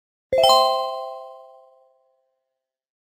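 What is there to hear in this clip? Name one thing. A bright game chime rings out and slowly fades.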